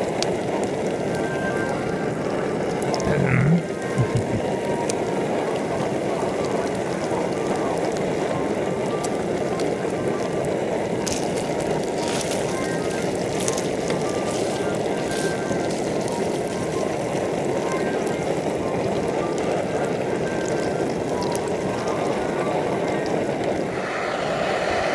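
Meat sizzles and crackles steadily in a hot frying pan.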